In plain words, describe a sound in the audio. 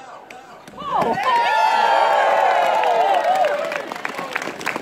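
A group of men cheers and whoops loudly.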